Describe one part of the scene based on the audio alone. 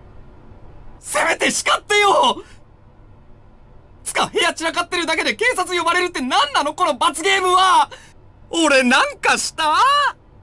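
A young man speaks with animation, shouting in exasperation.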